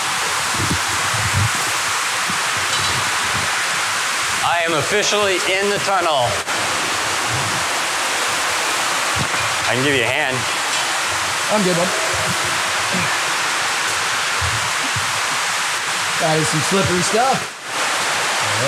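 Water rushes and splashes as it cascades over a concrete weir.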